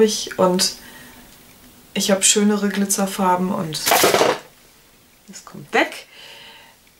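A young woman talks close to the microphone, calmly and with animation.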